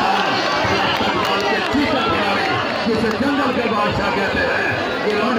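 A large outdoor crowd chatters and cheers throughout.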